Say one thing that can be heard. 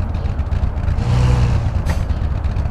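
Tyres screech as a car turns sharply.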